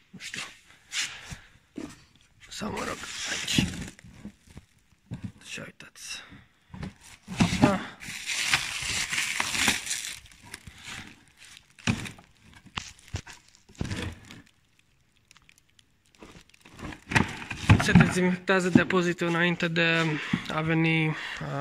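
Plastic wrap crinkles and rustles as a hand pulls at it.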